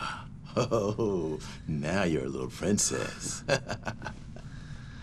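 A man speaks cheerfully, close by.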